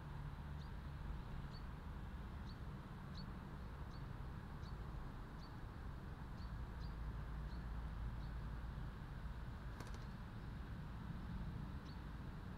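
A bird gives short sharp chirps over and over at a steady pace.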